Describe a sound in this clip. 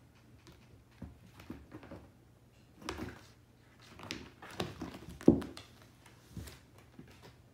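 A cat's paws thump on a wooden floor.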